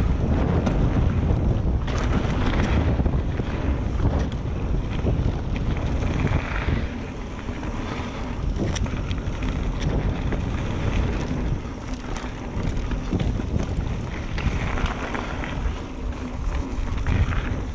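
Bicycle tyres crunch and rattle over a rough gravel trail.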